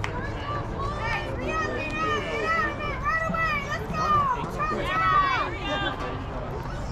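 Young girls chant and cheer loudly outdoors.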